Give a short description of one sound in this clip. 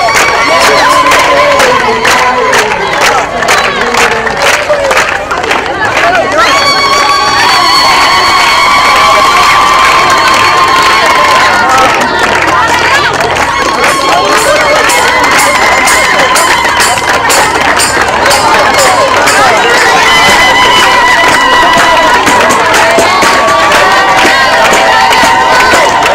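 A crowd claps hands in a steady rhythm.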